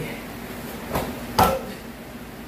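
Bare feet stamp on a foam mat.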